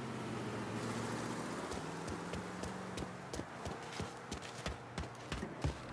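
Footsteps run across hard ground.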